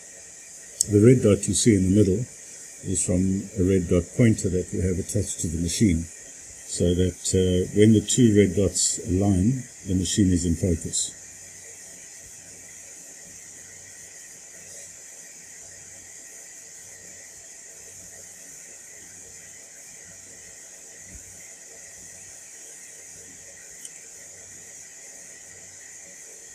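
A laser engraver hums and whirs softly as it moves.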